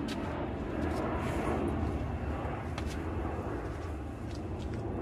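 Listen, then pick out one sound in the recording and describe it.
A towel rubs against a man's face.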